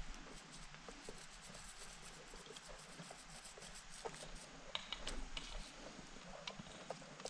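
Small plastic pieces click and tap close by in someone's hands.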